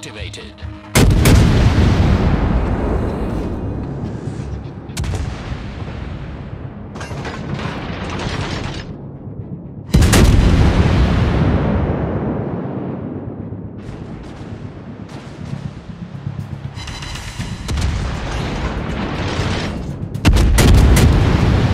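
Heavy naval guns fire thunderous salvos that roll away in long booming echoes.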